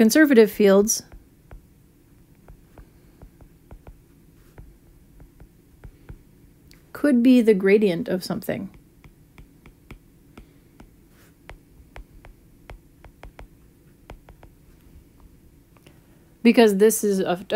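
A stylus taps and scratches lightly on a glass tablet.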